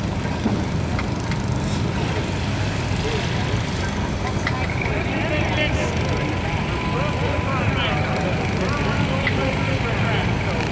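Steam traction engines idle with a steady low rumble outdoors.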